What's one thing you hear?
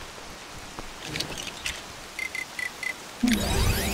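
Menu selection blips tick quickly.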